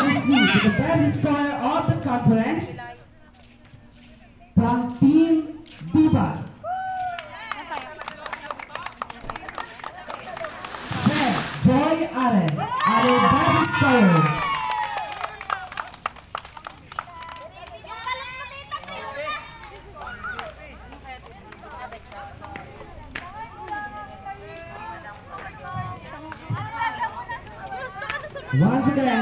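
A group of young men and women talk and shout with animation outdoors.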